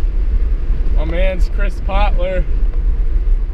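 A young man talks inside a car.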